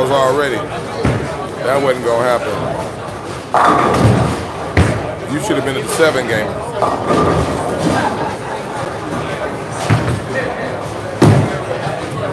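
Bowling balls crash into pins with sharp clatters.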